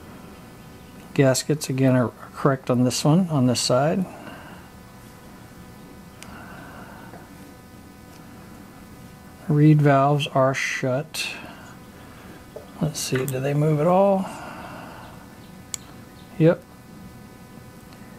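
Small metal parts click and clink softly.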